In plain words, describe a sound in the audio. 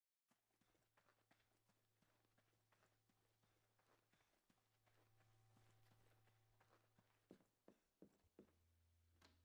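Footsteps run over soft ground, very faintly.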